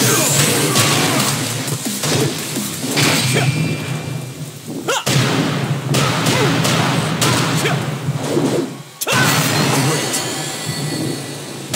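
Punches and kicks land with sharp impact thuds.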